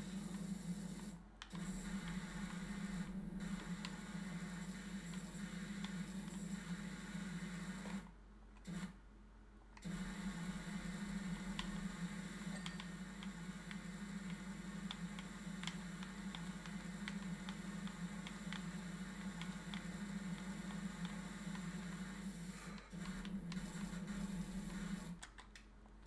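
A pressure washer sprays a steady hissing jet of water.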